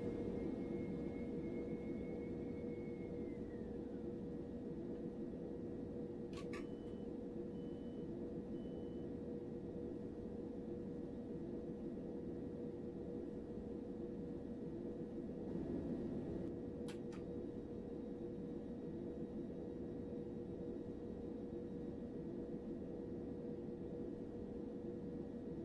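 A train engine hums steadily while idling.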